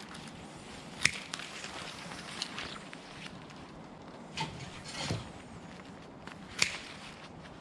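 Pruning shears snip sharply through thin branches.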